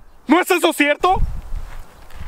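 A man shouts loudly up close.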